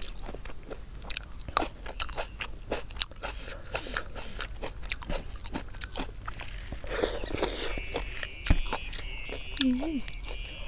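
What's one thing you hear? A young woman chews and crunches food close up.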